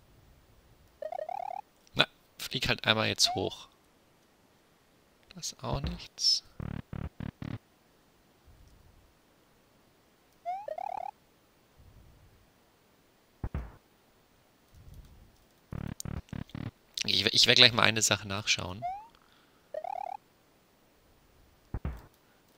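Bright electronic game sound effects chirp and blip in short bursts.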